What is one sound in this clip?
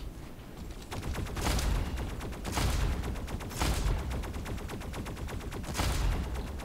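Gunfire blasts in quick bursts.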